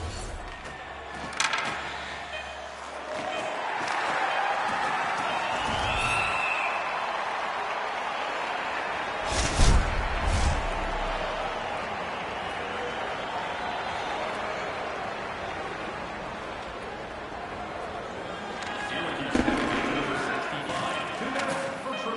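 A large arena crowd cheers and murmurs throughout.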